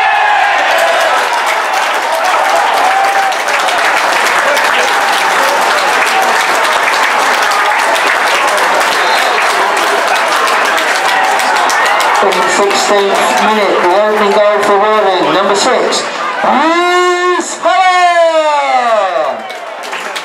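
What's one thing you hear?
A large crowd of spectators cheers and shouts loudly outdoors.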